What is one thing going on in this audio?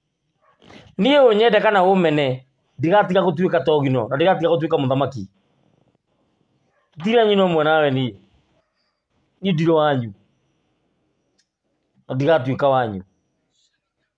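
A man speaks with animation, close to a microphone, in short bursts with pauses.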